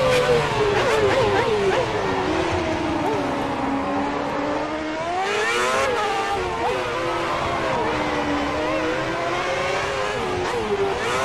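A racing car engine screams loudly, rising and falling in pitch as the car shifts gears and brakes.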